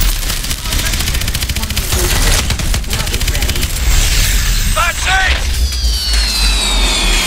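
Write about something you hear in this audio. Rocket engines roar with a deep, steady rumble.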